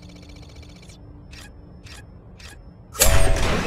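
An electronic panel gives several short beeps.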